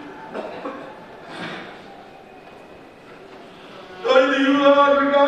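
A man chants in a wavering voice through a microphone in an echoing hall.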